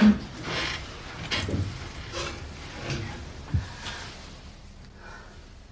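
Bedding rustles as a young woman settles in bed.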